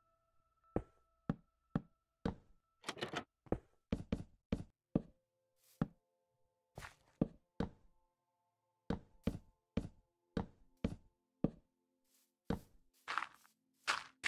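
Wooden and stone blocks knock sharply as they are placed, one after another.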